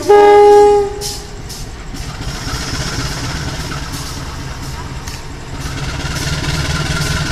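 A diesel train rumbles as it approaches along the tracks.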